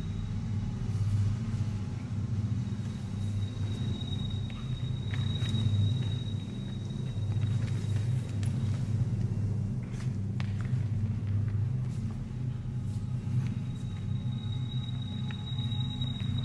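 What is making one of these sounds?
Footsteps thud and scuffle on a hard stage floor.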